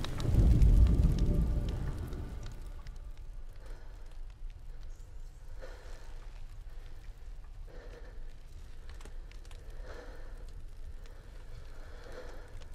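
Wind blows steadily with a low rumble.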